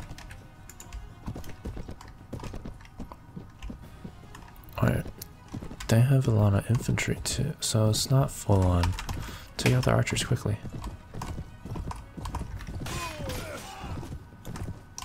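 A horse gallops, its hooves thudding on soft ground.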